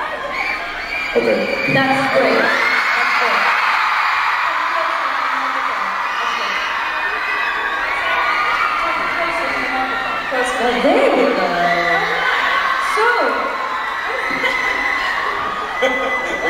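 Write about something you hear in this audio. A young man speaks into a microphone, amplified over loudspeakers in a large arena.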